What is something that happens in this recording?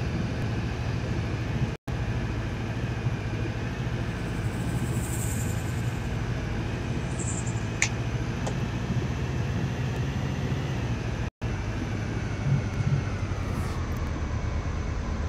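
An armoured vehicle's engine rumbles steadily as it drives.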